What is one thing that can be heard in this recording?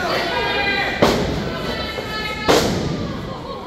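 Wrestlers thud onto the ring mat.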